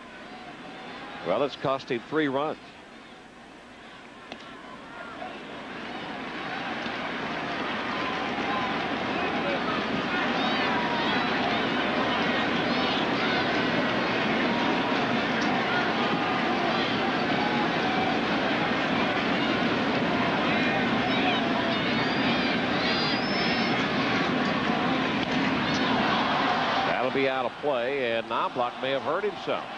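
A large crowd cheers and roars in a stadium, growing louder.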